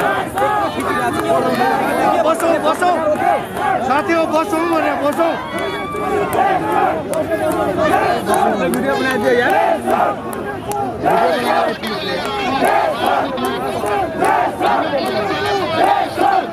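A man shouts angrily close by.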